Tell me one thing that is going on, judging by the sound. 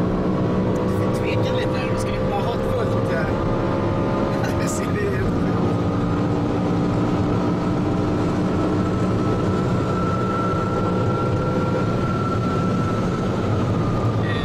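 A car engine roars loudly under hard acceleration, its pitch climbing through the gears.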